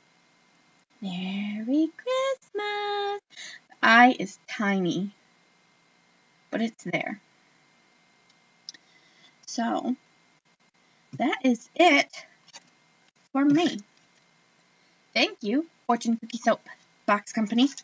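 A woman talks close by, animated and in short bursts.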